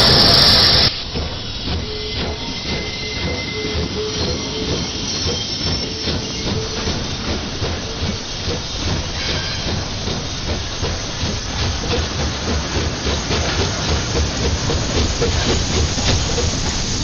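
A steam locomotive chugs with rhythmic puffs that slowly quicken.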